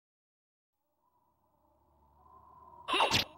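A video game plays a swelling tone that ends in a loud burst.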